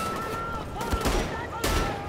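Bullets clang against metal.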